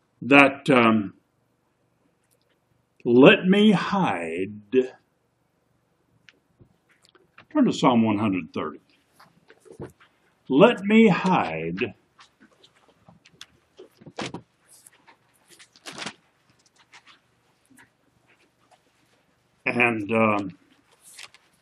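An elderly man speaks close to the microphone in short, calm bursts with pauses between them.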